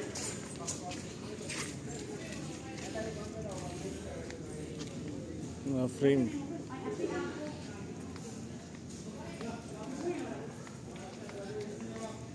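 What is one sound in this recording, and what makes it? Footsteps walk across a hard floor in a large, echoing hall.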